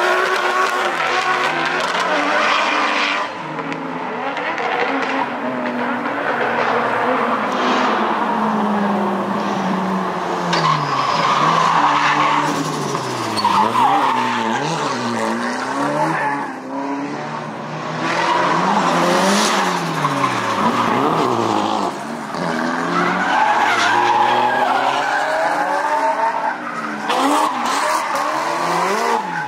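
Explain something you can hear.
Car engines rev hard and roar as cars drift through a bend.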